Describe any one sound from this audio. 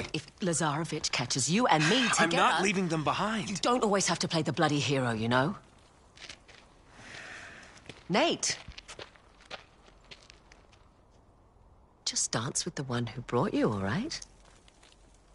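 A young woman speaks urgently up close.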